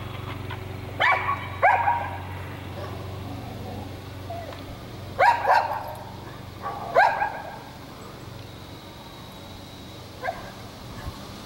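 A dog barks loudly in short bursts.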